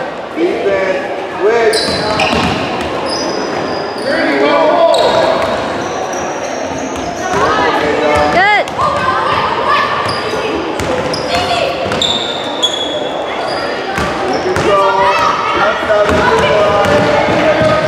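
Players and spectators shout in a large echoing gym.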